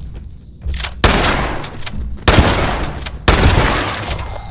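A shotgun fires loud blasts in a row.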